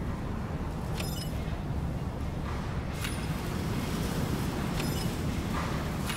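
A soft interface chime sounds as a menu opens.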